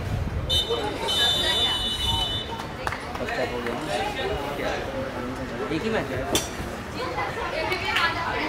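Young men talk and shout nearby outdoors.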